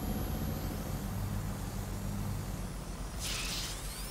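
A small drone buzzes steadily as it flies.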